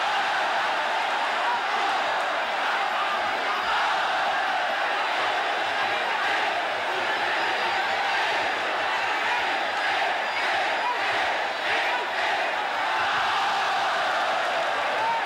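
A large crowd cheers and shouts steadily.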